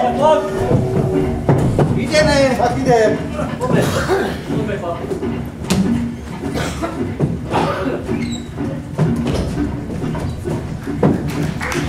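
Several men talk and call out loudly in a large hall.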